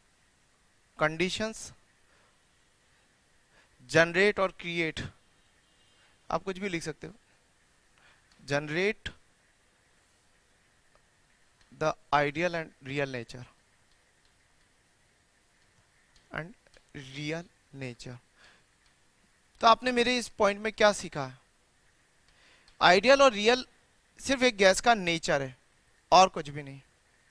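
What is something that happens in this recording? A man speaks in short, calm phrases through a close microphone, with pauses between them.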